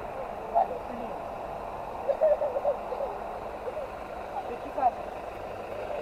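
Young girls chatter nearby.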